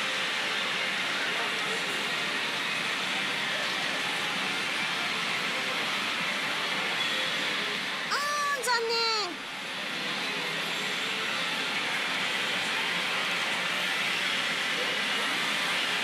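A pachinko machine rattles and jingles steadily amid a noisy din.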